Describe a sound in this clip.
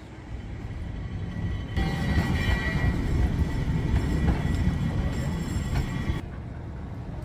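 A cable car rumbles along its track.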